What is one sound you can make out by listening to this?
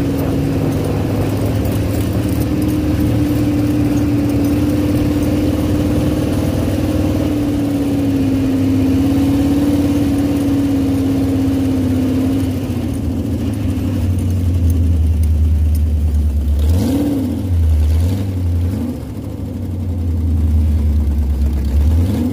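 A dune buggy engine drones loudly and revs as the buggy drives over sand.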